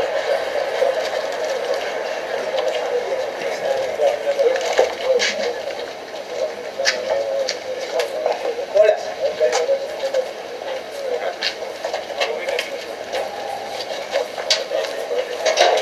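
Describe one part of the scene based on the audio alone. Metal gear and cables clink and rattle as they are handled.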